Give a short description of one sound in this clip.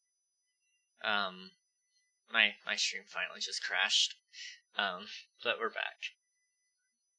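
A young man speaks casually and with animation into a headset microphone.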